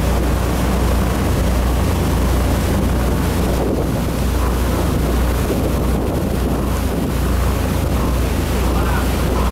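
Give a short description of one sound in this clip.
A boat engine roars steadily at close range.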